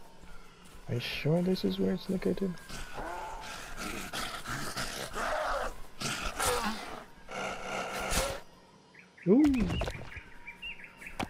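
A zombie growls and snarls close by.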